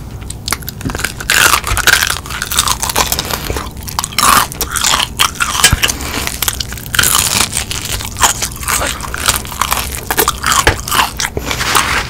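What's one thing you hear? A young woman bites into crispy fried chicken with loud crunches.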